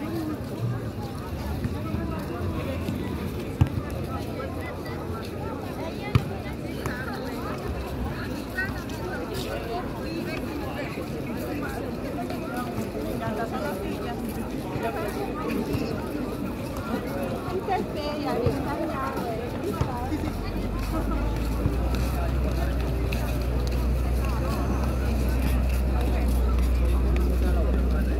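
A crowd of people chatters and calls out across an open beach.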